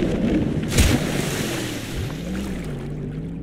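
Water gurgles, muffled, as if heard underwater.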